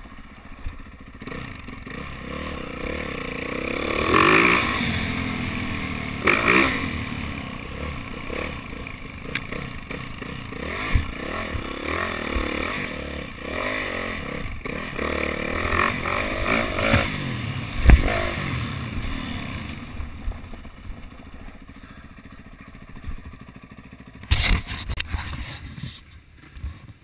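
A dirt bike engine revs and roars up and down close by.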